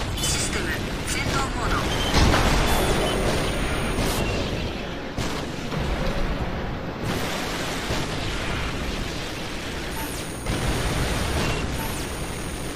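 Mech boosters roar in a video game.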